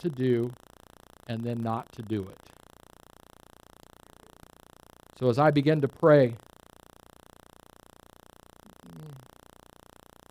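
A man speaks slowly and deliberately through a microphone, with long pauses between phrases.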